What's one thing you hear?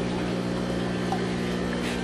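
Water splashes as it pours from a net into a tank.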